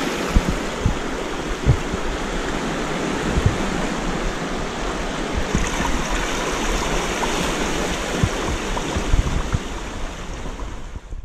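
Sea water laps and splashes against rocks close by.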